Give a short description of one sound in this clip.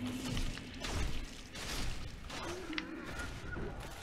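A sword slashes into a body.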